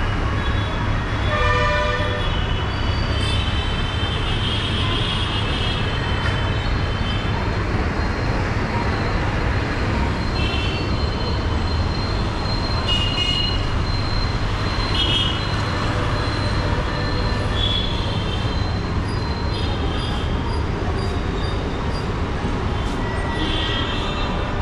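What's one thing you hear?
Vehicle horns honk now and then from the street below.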